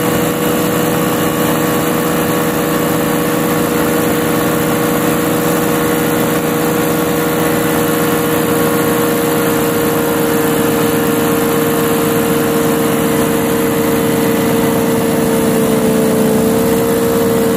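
A paramotor engine drones loudly and steadily.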